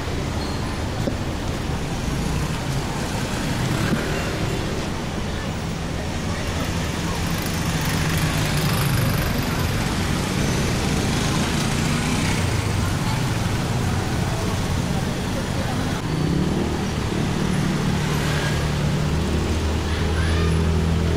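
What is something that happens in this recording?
Busy street traffic rumbles steadily outdoors.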